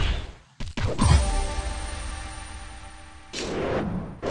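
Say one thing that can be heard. A game chime rings out as a stage ends.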